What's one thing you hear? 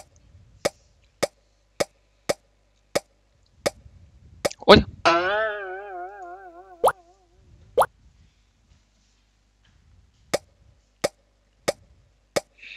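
Short bright pops sound one after another as pieces are picked up.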